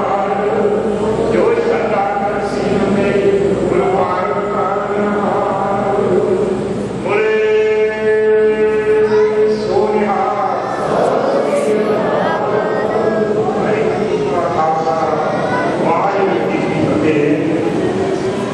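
A group of women chants a prayer together.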